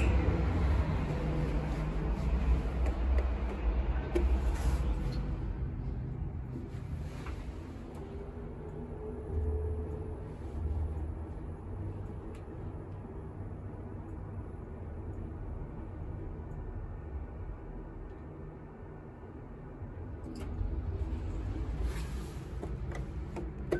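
A lift hums steadily as it rises.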